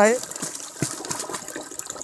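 Powder pours from a plastic jug into a drum.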